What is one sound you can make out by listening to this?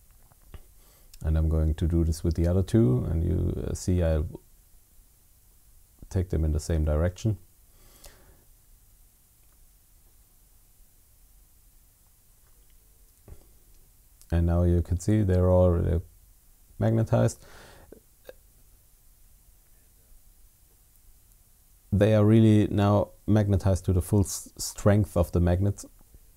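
Small plastic parts click and tap as they are fitted together by hand.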